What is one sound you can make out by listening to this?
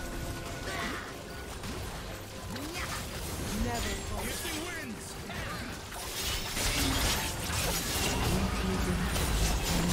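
Magic spells whoosh, crackle and burst during a fast fight.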